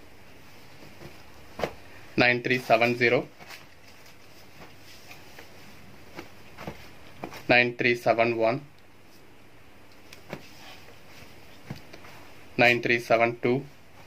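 Cloth rustles as hands unfold and handle it.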